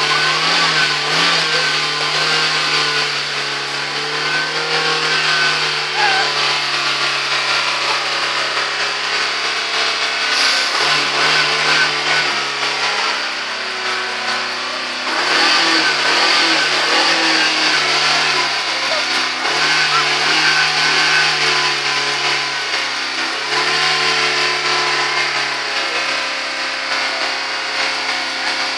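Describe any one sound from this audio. A car engine runs loudly at high revs, close by, rising and falling slightly.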